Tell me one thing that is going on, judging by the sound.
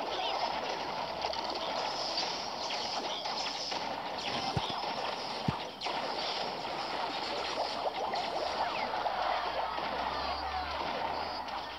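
Game battle sounds of troops clashing and attacking play continuously.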